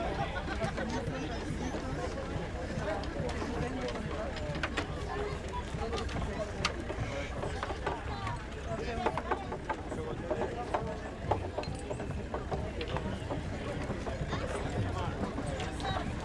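Wooden cart wheels rumble and creak over the road.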